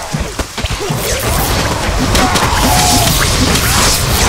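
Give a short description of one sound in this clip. Blades clash and strike in a fierce fight.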